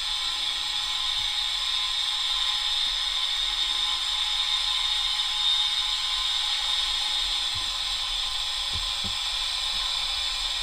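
A model diesel locomotive's engine sound idles steadily through a small speaker.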